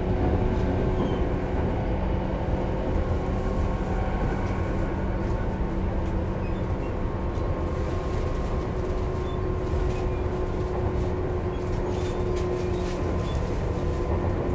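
A train rumbles steadily along the tracks with a low hum.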